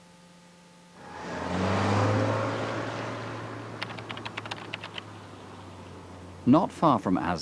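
A car drives past at speed.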